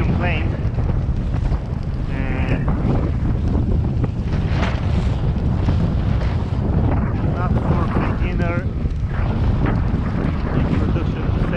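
Waves splash against a small boat's hull.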